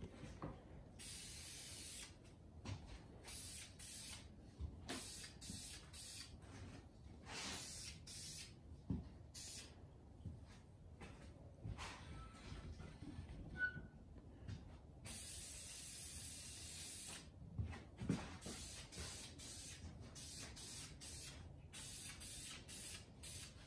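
A spray gun hisses in short and long bursts.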